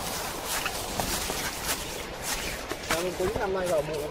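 Sandals crunch on dry leaves.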